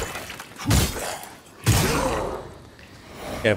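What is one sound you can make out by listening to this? Heavy blows land with loud whooshing strikes.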